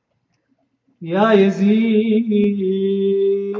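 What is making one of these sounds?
An elderly man chants loudly into a microphone in a long, drawn-out melodic voice.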